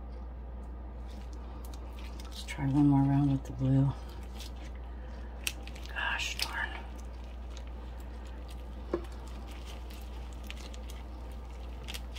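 Plastic rustles and crinkles under gloved hands.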